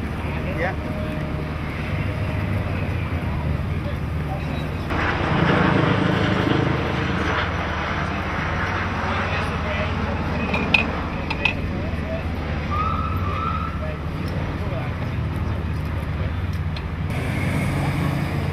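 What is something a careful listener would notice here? An engine hums steadily outdoors.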